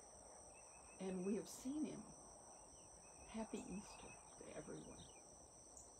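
An elderly woman speaks calmly, close by, outdoors.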